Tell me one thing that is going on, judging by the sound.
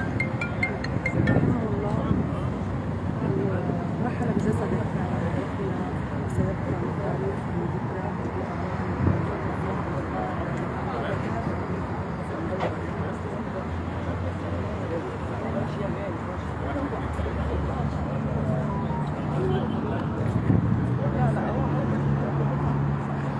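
A crowd of men talk and shout all around, close by.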